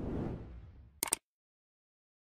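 A mouse button clicks once.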